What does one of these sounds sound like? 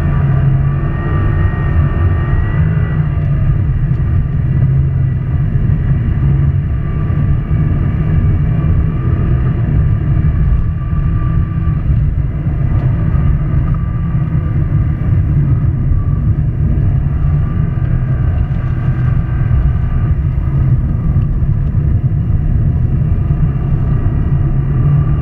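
Studded tyres rumble and crunch over ice.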